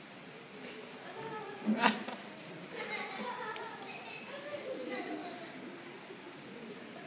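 A small string ensemble plays in an echoing hall.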